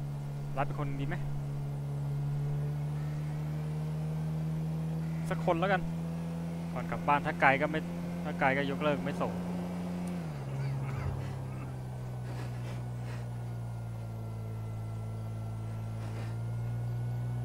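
A car engine drones steadily, then drops lower as it shifts gear.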